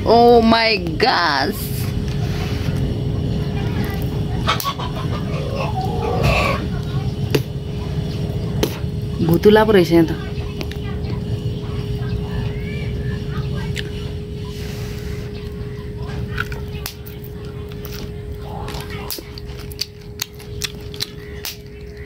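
A young woman bites and chews crunchy corn.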